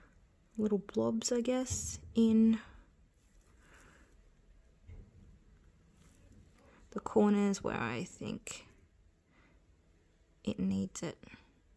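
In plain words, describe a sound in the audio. Metal tweezers tap lightly against a hard nail.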